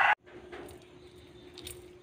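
Salt patters onto food in a pan.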